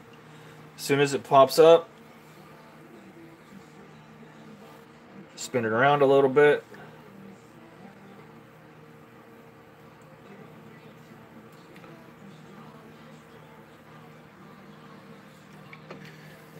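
Hot oil sizzles and bubbles softly in a pot.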